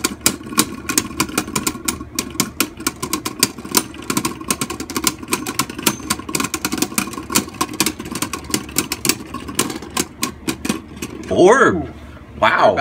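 Two spinning tops whir steadily in a plastic arena.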